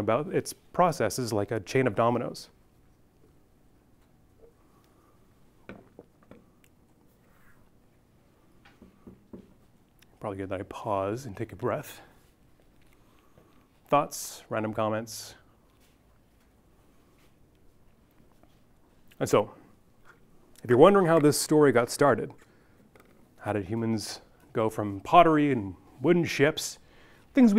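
A young man lectures calmly, with pauses between phrases.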